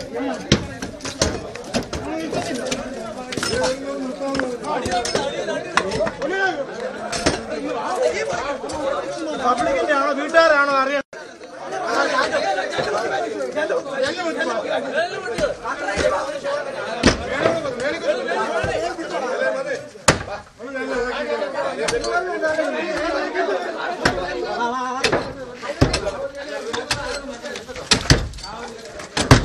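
Several men talk and shout with animation close by.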